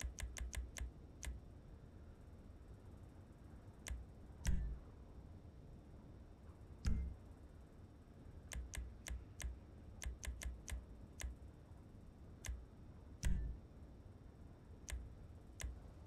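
Short menu clicks tick quickly, one after another.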